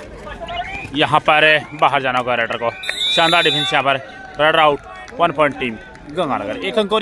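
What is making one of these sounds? A crowd of men shouts and cheers loudly.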